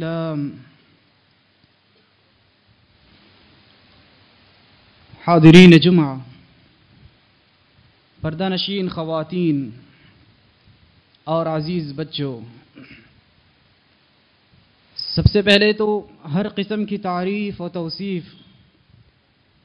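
A man speaks firmly into a microphone in bursts, with pauses between phrases.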